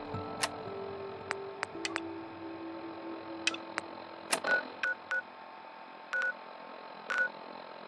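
Short electronic clicks and beeps sound as a menu selection changes.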